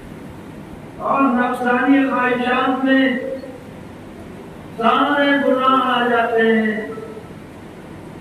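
An elderly man speaks into a microphone in a slow, chanting voice, heard through a loudspeaker.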